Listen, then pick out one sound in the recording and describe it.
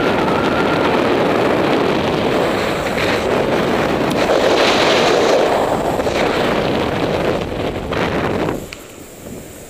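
Wind rushes and buffets against the microphone of a flying paraglider.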